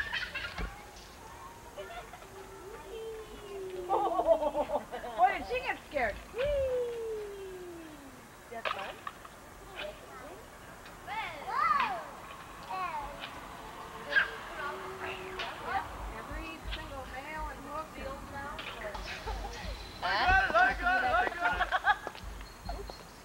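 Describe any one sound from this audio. Young children shout and squeal excitedly outdoors.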